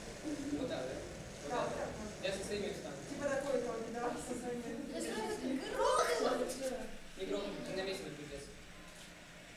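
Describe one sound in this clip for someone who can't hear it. Children sing together.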